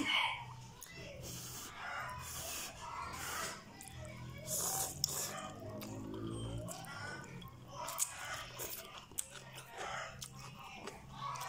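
A woman slurps noodles loudly and chews close by.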